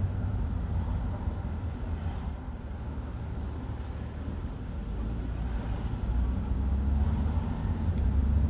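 Traffic rumbles along a busy street.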